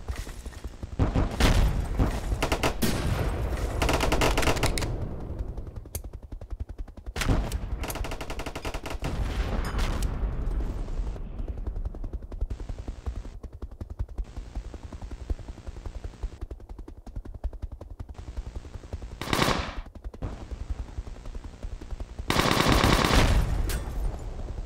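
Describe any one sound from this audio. Explosions boom now and then.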